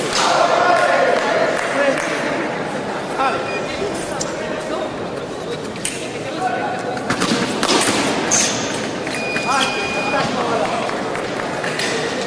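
Fencers' shoes squeak and stamp on a hard floor.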